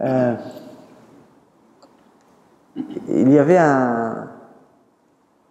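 A man speaks into a microphone, his voice echoing in a large hall.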